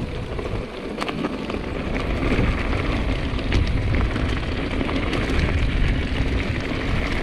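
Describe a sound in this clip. A bicycle frame clicks and clatters over bumps.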